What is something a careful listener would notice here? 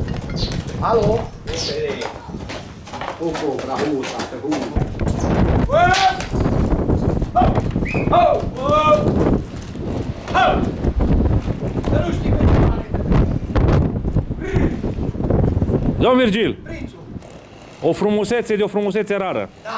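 Horse hooves thud on soft dirt as a horse trots and prances.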